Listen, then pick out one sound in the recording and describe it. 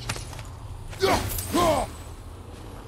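A large bird screeches loudly as it flaps away.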